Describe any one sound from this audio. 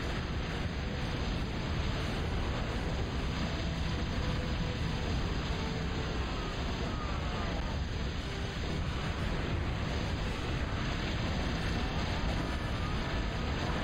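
Explosions and gunfire rumble in a battle without pause.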